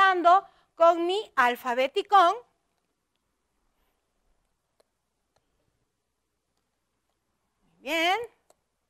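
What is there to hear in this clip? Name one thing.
A woman speaks slowly and clearly, drawing out words as if teaching.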